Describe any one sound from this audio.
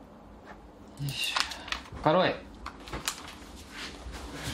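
Paper pages rustle and flip.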